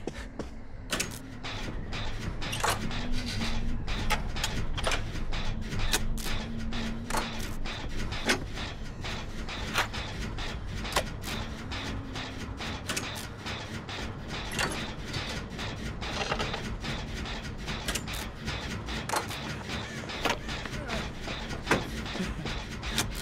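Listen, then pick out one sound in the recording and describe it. Metal parts of a machine clank and rattle.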